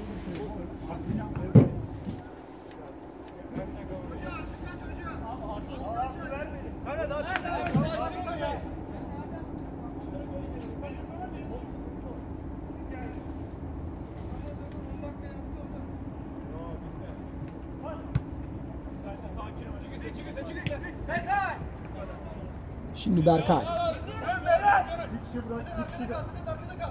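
Young men shout and call out to each other across an outdoor pitch.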